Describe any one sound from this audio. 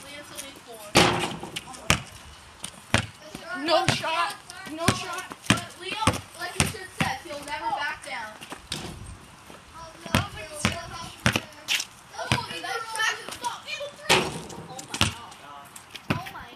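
A basketball bounces hard on concrete.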